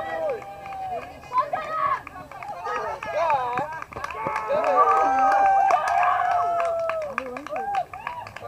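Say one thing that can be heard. A man shouts with excitement nearby, outdoors.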